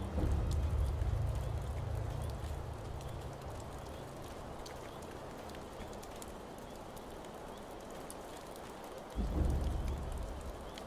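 Leaves rustle as someone creeps slowly through dense bushes.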